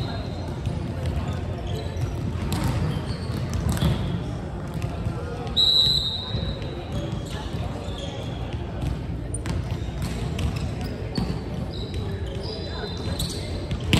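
Volleyballs thump against hands and the floor, echoing in a large hall.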